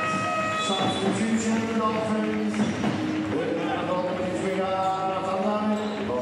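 A young man speaks in protest to a referee nearby.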